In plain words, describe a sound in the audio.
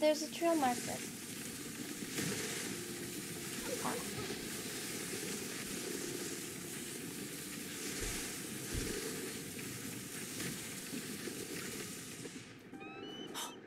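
A sled glides and hisses over snow.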